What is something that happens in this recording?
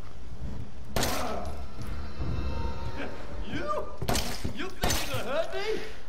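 A pistol fires loud single shots.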